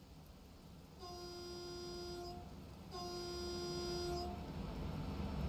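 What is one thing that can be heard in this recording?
A train horn sounds two long blasts.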